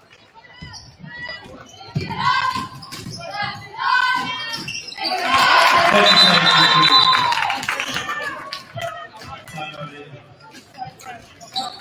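A crowd cheers in an echoing gym.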